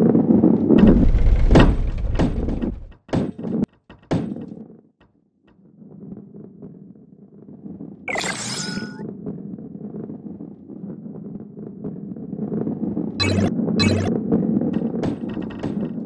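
Plastic blocks clatter and tumble as a ball smashes into them.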